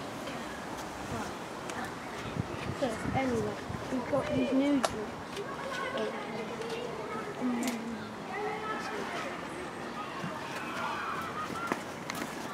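A girl and a boy talk nearby outdoors.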